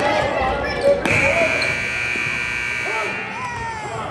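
A referee blows a whistle.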